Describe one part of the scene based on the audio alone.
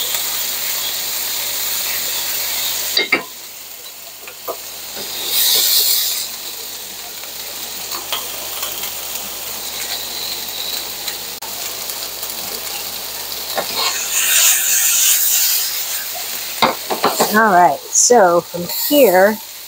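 Vegetables sizzle in a hot frying pan.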